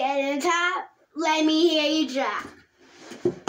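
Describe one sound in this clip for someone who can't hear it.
A young boy sings loudly close by.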